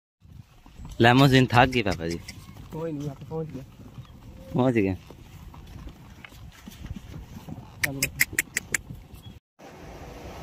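A donkey's hooves clop on a dirt track.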